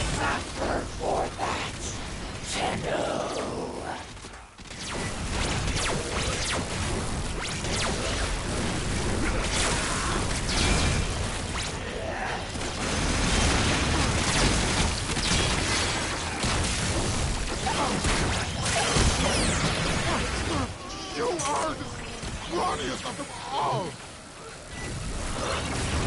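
Gunfire rattles rapidly in bursts.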